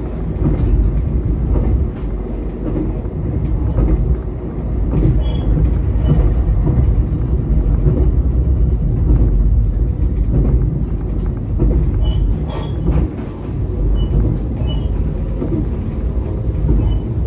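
A train rumbles steadily along the track.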